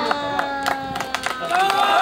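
A crowd of spectators claps outdoors.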